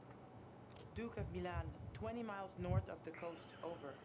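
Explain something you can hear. A young woman speaks calmly into a radio microphone.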